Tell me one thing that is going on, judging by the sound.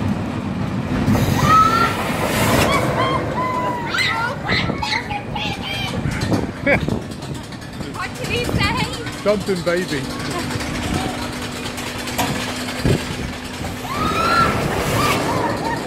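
Young riders scream with excitement high above.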